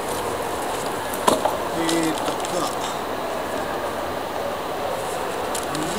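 Paper rustles as a man handles a newspaper.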